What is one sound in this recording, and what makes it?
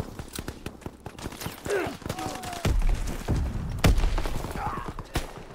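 Footsteps thud on dirt and wooden boards.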